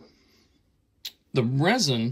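A folding knife clicks softly as it is handled.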